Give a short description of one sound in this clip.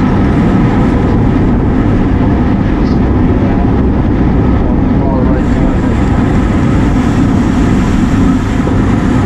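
Wind rushes loudly over the microphone while riding outdoors.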